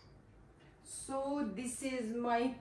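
A young woman speaks casually nearby.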